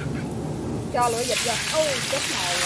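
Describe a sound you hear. Meat drops into a hot wok with a loud burst of sizzling.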